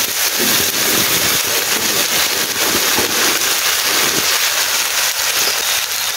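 Greens drop into a hot wok with a burst of hissing.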